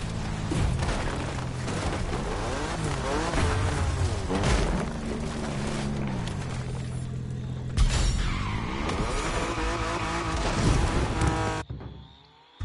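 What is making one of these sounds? A car engine revs and roars through gear changes.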